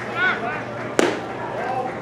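A baseball smacks sharply into a catcher's mitt.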